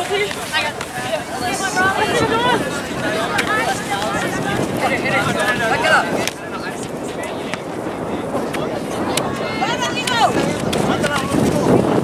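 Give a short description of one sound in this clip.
Spectators close by call out and cheer loudly outdoors.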